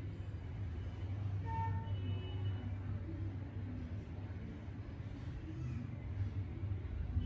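Hands knead and rub shoulders through shirt fabric.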